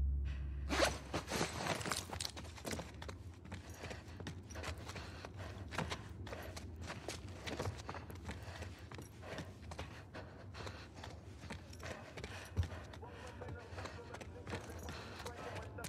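Footsteps creak softly on a wooden floor.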